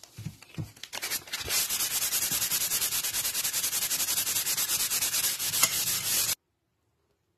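Sandpaper rubs back and forth against a metal blade.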